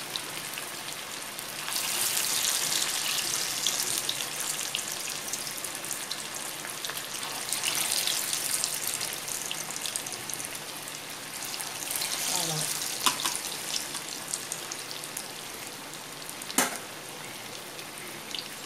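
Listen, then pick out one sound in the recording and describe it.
Chicken pieces sizzle and bubble as they deep-fry in hot oil.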